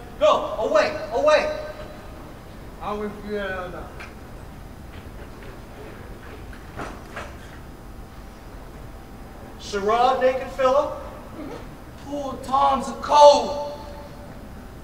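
A man speaks loudly and theatrically.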